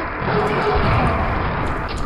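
An explosion bursts.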